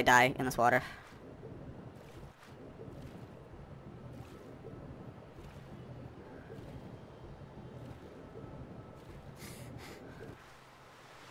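Muffled water swirls and gurgles.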